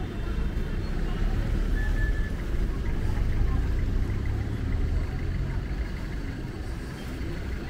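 Traffic hums steadily along a road.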